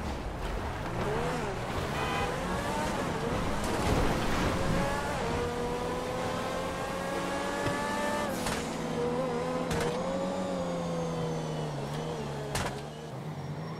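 A sports car engine roars and revs up as the car speeds away.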